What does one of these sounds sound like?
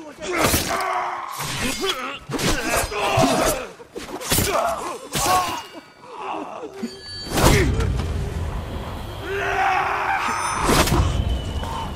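Swords clash and slash in quick, sharp strikes.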